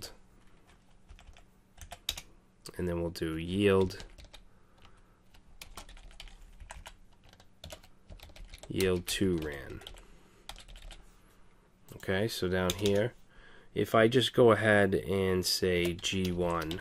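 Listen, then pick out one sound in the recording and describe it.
Keys tap on a computer keyboard in quick bursts.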